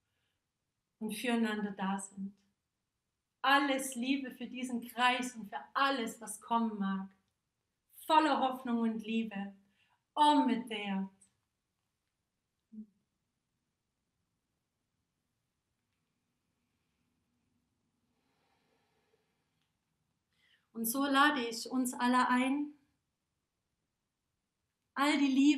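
A young woman speaks calmly and clearly close by, with pauses.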